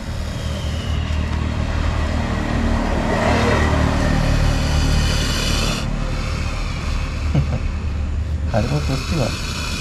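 A cobra hisses in short, breathy bursts.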